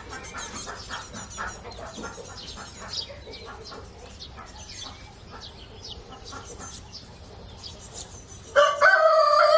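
Small birds chirp and twitter busily close by.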